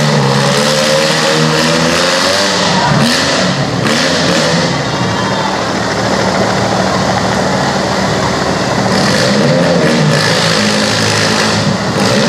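Car engines idle and rev in a large echoing hall.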